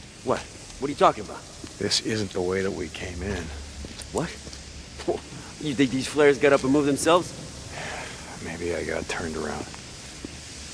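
A second man answers calmly nearby.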